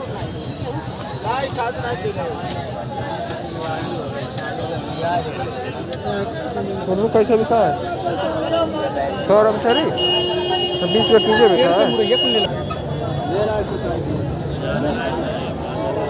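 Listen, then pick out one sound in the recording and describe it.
Several men and women talk and call out close by.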